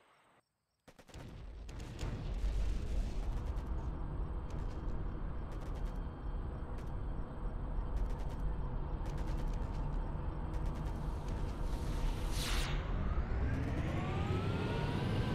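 A tank engine starts up and rumbles steadily, then revs higher as the tank moves off.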